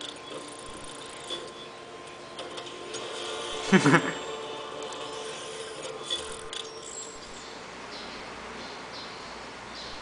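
Electronic game sound effects play through small computer speakers.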